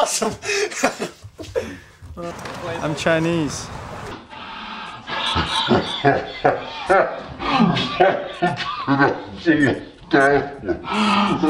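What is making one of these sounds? A man laughs loudly and heartily close by.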